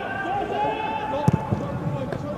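A football is struck hard with a thud.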